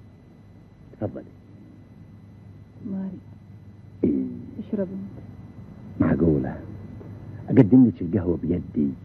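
A man speaks in short, calm phrases, close by.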